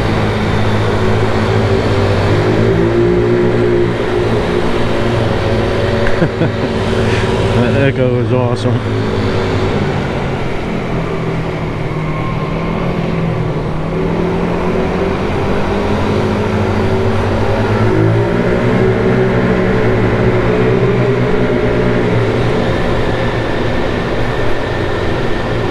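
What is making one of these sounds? A motorcycle engine hums steadily up close, rising and falling with speed.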